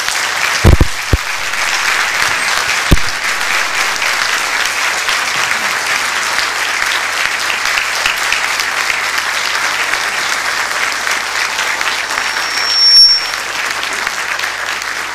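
An orchestra plays in a large hall.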